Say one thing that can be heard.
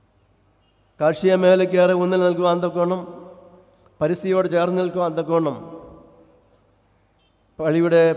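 An elderly man speaks slowly and solemnly into a microphone over loudspeakers, in a large echoing space.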